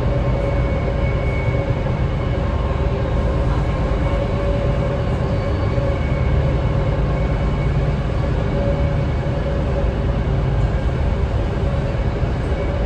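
A train car rumbles and hums steadily as it rolls along the tracks.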